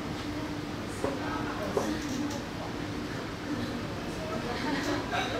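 A woman speaks to a class.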